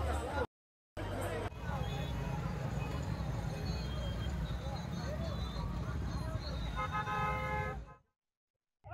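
Motorcycle engines idle and rumble nearby.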